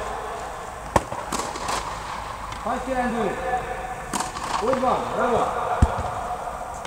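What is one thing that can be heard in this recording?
Tennis rackets strike a ball back and forth with sharp pops in a large echoing hall.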